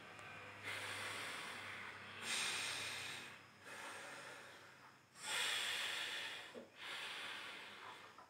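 A young woman breathes forcefully in and out through her nose in long, steady breaths.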